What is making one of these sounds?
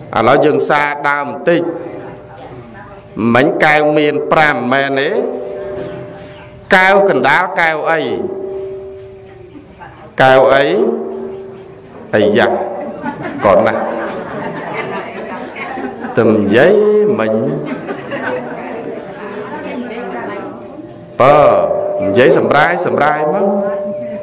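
A man chants in a steady, melodic voice into a microphone, with echo.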